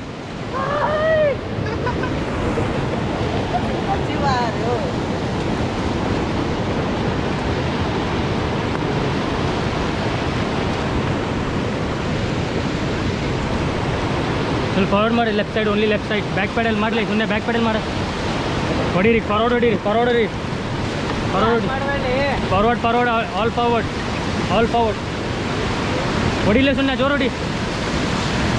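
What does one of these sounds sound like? Whitewater rapids roar loudly and steadily nearby.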